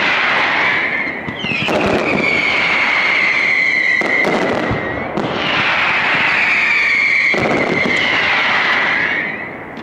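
Firework rockets whistle loudly overhead.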